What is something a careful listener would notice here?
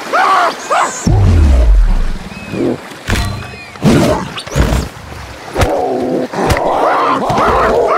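A big cat snarls and roars.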